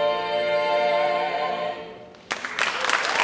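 A mixed choir sings a held chord in harmony in a large echoing hall.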